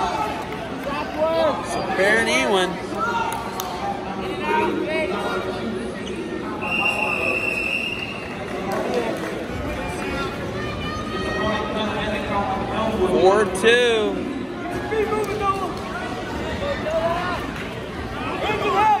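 Wrestling shoes squeak on a mat.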